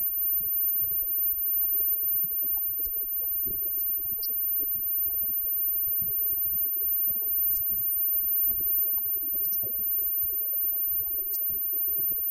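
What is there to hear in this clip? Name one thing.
Electric guitars play distorted chords.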